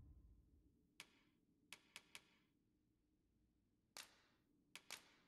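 Short soft menu clicks tick now and then.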